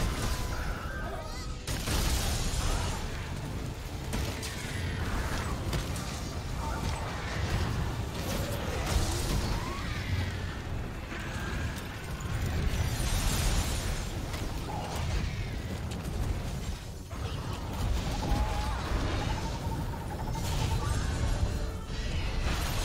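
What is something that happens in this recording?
A huge creature thrashes with heavy rumbling blows.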